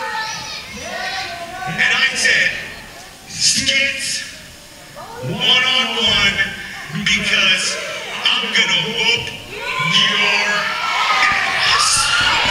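A man shouts aggressively into a microphone in a large echoing hall.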